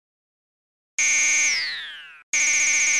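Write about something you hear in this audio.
Electronic beeps tick quickly as a bonus tallies up, with a falling tone.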